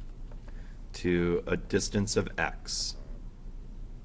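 An older man speaks calmly into a nearby microphone.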